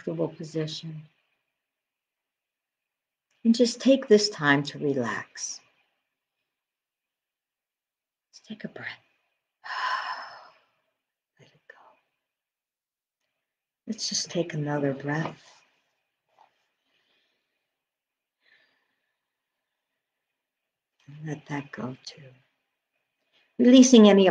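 A middle-aged woman speaks calmly, close to a microphone, in short phrases with pauses.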